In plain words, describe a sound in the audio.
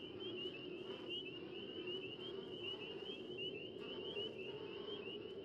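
Footsteps walk slowly on pavement.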